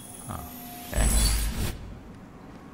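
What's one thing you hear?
A bright shimmering chime rings out.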